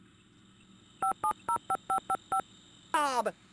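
A phone rings in short repeated bursts.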